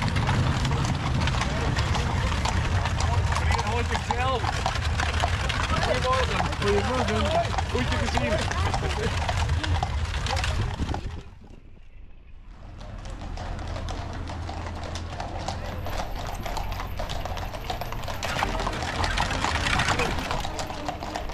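Horses' hooves clop steadily on a paved road.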